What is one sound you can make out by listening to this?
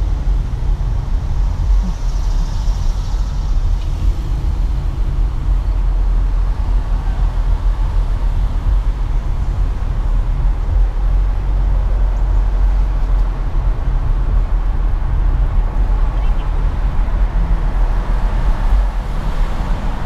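A car's engine hums steadily from inside.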